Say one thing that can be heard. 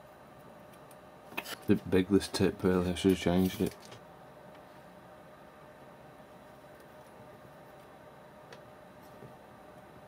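A metal tip scrapes and taps softly against a circuit board.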